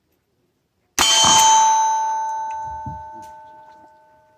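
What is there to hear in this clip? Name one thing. A steel target rings out after being hit and slowly fades.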